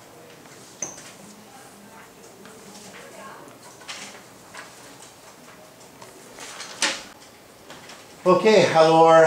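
Papers rustle as sheets are handed out.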